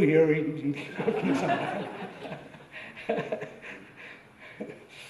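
An elderly man laughs heartily into a microphone.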